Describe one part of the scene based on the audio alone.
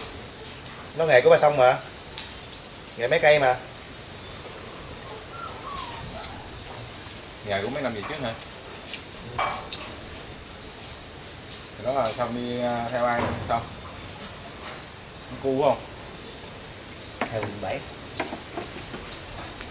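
Men talk casually at close range, in short bursts.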